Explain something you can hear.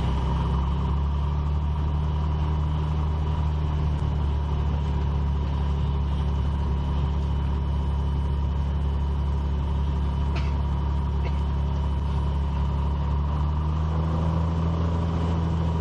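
Tyres rumble over a grass runway.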